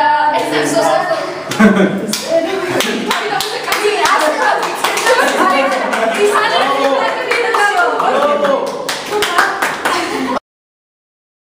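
Young women laugh loudly and excitedly together.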